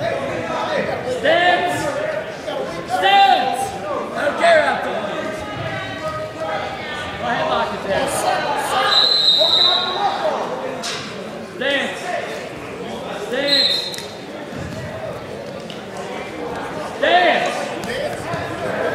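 Men in a crowd shout encouragement loudly in a large echoing gym.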